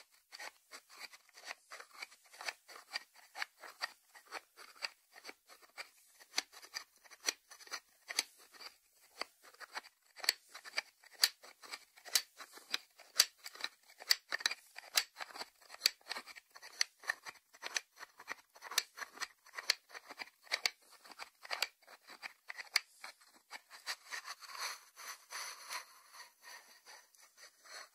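Fingertips tap on a ceramic lid.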